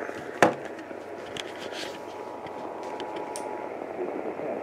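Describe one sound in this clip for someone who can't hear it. A small radio sounds a steady electronic tone that then stops.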